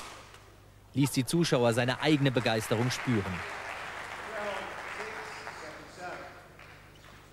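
A crowd applauds after the rally.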